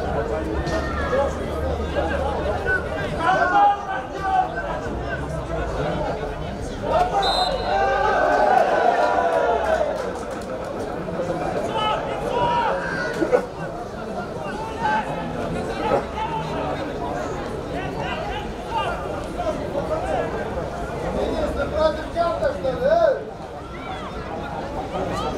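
Young men shout and call out to each other across an open outdoor field.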